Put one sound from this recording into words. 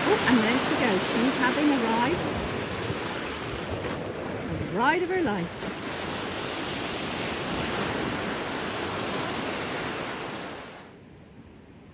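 Waves wash and break close by.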